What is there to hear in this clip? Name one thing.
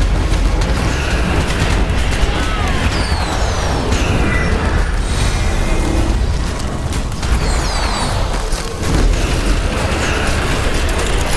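Explosions and magic blasts crackle and boom in a game battle.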